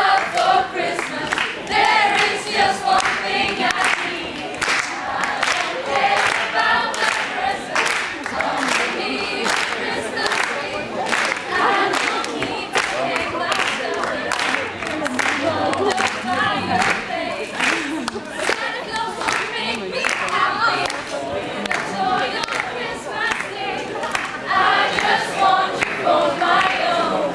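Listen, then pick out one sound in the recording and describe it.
A group of young women and men sing together in an echoing hall.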